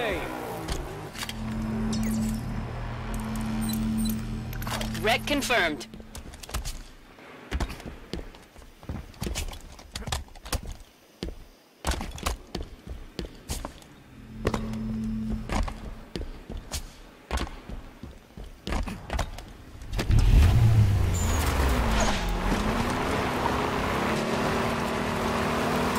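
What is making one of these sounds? A vehicle engine hums and revs.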